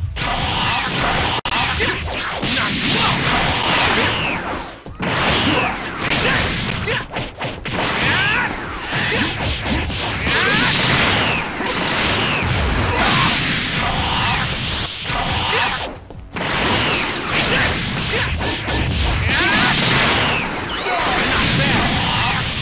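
Punches and kicks smack and thud in a video game fight.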